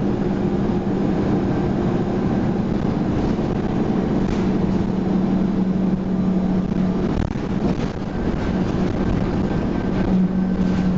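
A bus engine hums steadily while driving.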